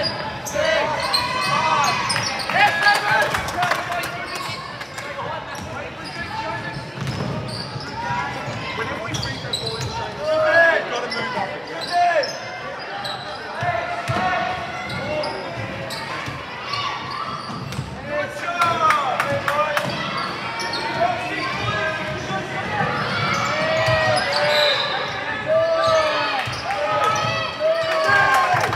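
Players' shoes squeak sharply on a wooden court in a large echoing hall.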